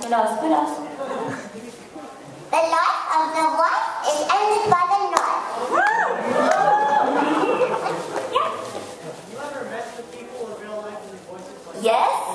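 A young woman speaks with animation into a microphone, heard through loudspeakers in a large echoing hall.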